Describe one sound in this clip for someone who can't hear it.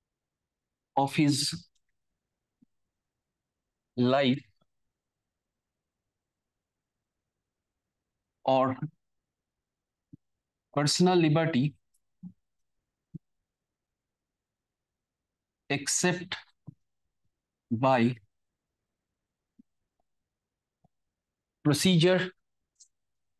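A man speaks in short phrases with long pauses, close to a microphone.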